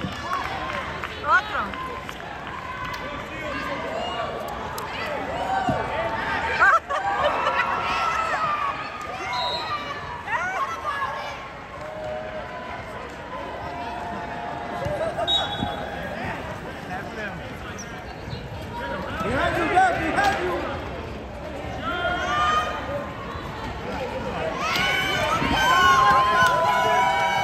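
Young players shout and call out to each other across a large echoing gym.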